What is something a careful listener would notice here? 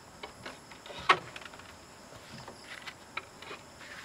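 A wooden door knocks shut.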